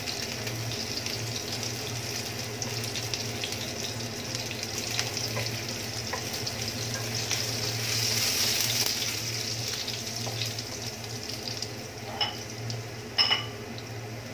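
Onions sizzle steadily in hot oil.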